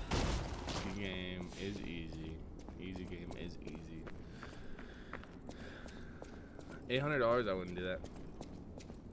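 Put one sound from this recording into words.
A young man speaks close to a microphone, with animation.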